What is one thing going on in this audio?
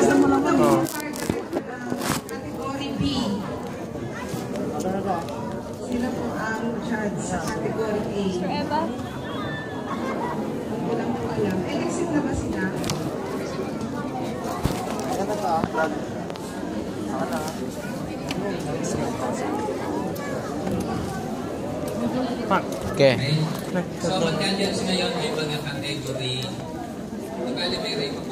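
A crowd of men and women chatter all around in a large room.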